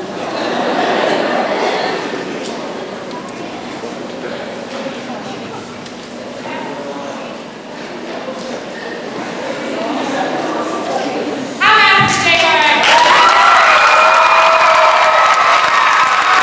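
A young man sings into a microphone, heard through loudspeakers in a large echoing hall.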